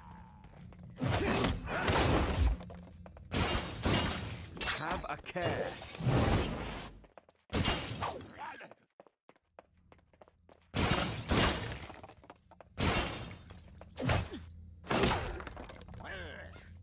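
Magic blasts crackle and whoosh in loud bursts.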